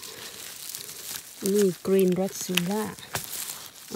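Dry leaves rustle as a mushroom is pulled from the ground.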